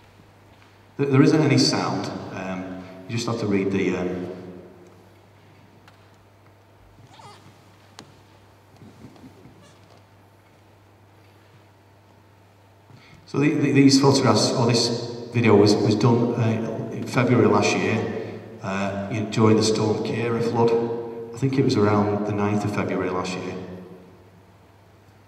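A man speaks calmly into a microphone, heard over loudspeakers in a large echoing hall.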